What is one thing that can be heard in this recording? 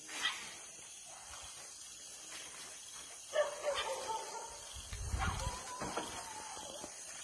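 Heavy footsteps thud softly on a road as a herd of elephants walks past.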